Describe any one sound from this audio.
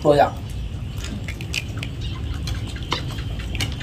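Spoons clink against a metal plate.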